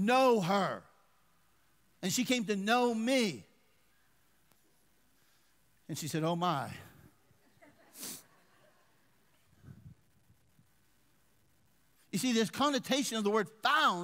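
A middle-aged man speaks with animation through a headset microphone, in bursts with pauses.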